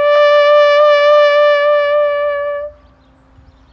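A bugle plays a long, steady held note outdoors, then stops.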